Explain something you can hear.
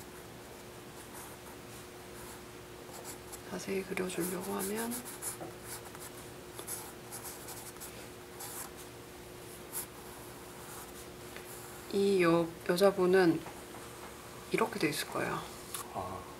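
A pencil scratches and scrapes on paper.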